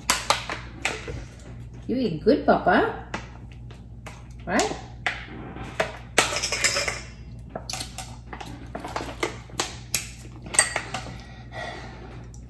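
A plastic water bottle crinkles as a boy drinks.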